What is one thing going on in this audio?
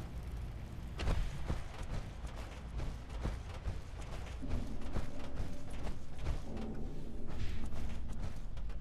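Heavy footsteps clank on metal walkways.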